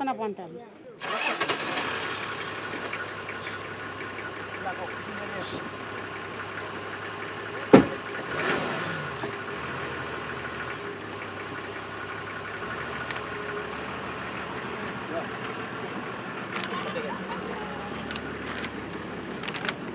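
A truck engine idles steadily outdoors.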